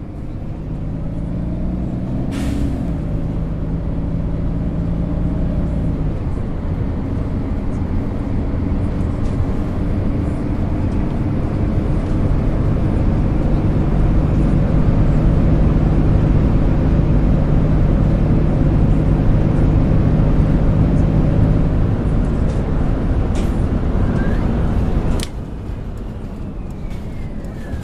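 A bus engine hums and rises and falls in pitch as the bus drives along.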